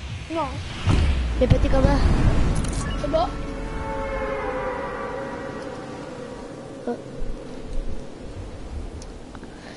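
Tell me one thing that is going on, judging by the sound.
Wind rushes past during a fall through the air.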